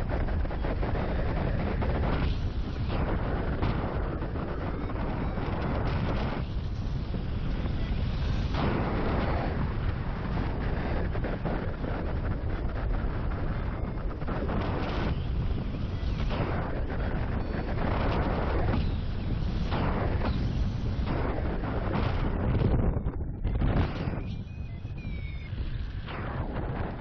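Strong wind rushes and buffets loudly past the microphone in open air.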